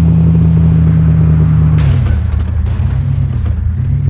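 A car crashes and tumbles with thuds.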